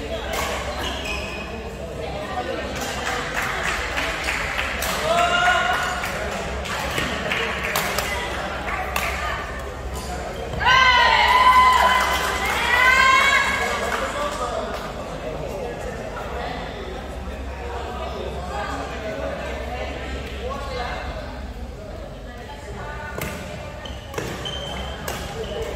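A crowd of people chatter in the background.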